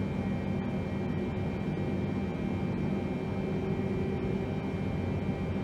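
Jet engines drone with a steady low roar, heard from inside an airliner.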